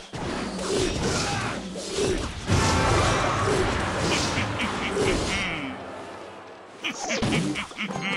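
Cartoonish battle sound effects clash and thump.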